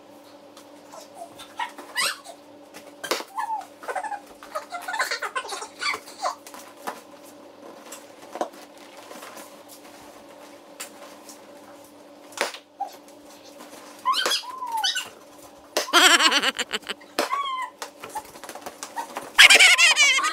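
A young woman laughs and calls out playfully.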